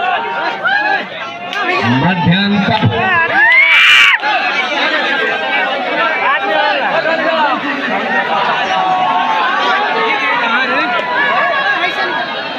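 A large outdoor crowd chatters and shouts continuously.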